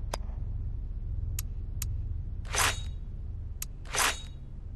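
Short, crisp menu clicks tick a few times.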